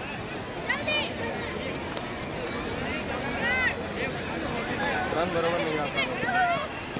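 Children shout and cheer in high voices outdoors.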